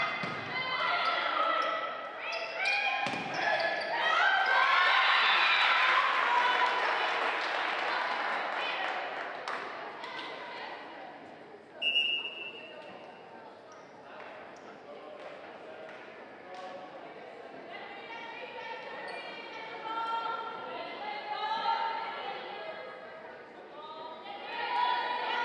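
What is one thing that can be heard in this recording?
Spectators chatter and call out in an echoing hall.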